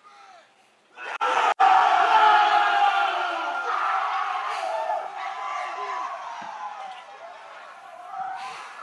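A large crowd cheers and whoops loudly outdoors.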